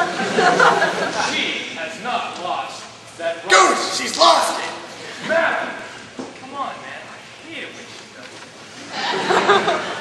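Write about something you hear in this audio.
Young men talk loudly with animation nearby.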